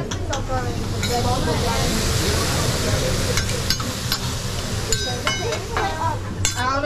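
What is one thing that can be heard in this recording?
Food sizzles loudly on a hot griddle.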